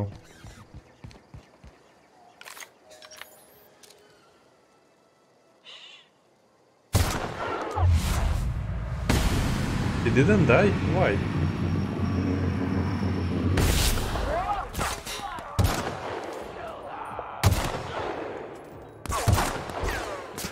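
Rifle shots ring out one at a time, with echoing booms.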